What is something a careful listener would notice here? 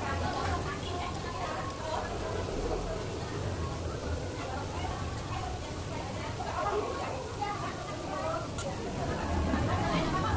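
Cutlery clinks against a plate.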